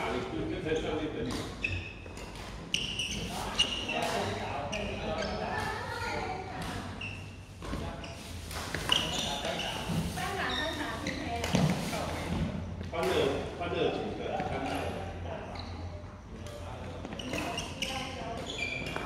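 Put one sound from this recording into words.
Men talk and call out to each other in a large echoing hall.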